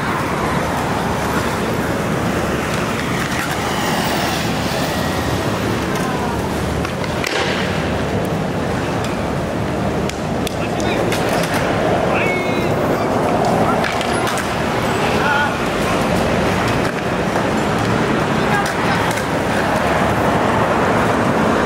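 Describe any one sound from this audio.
Traffic rumbles past steadily on a nearby road.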